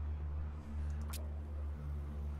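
A match strikes.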